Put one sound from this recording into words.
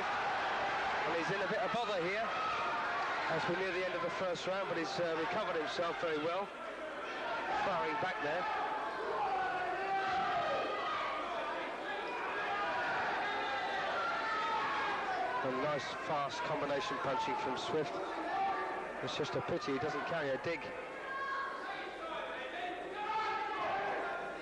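Boxing gloves thud against bodies in quick bursts.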